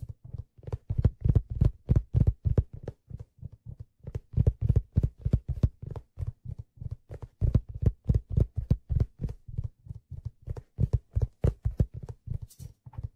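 A hand drum is beaten quickly in a steady rhythm with deep thumps.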